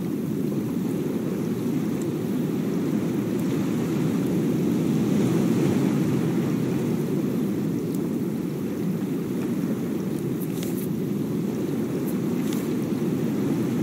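Ocean waves wash steadily around a raft, with a low rumble of wind.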